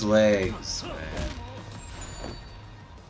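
Heavy punches land with thuds.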